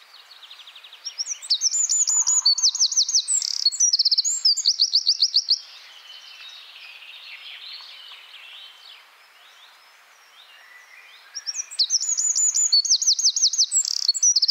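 A small bird sings a loud, fast song of rapid trills close by.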